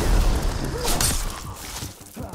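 A scythe slashes into a monster with a wet thud.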